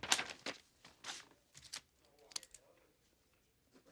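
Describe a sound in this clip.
Paper rustles as a sheet is turned.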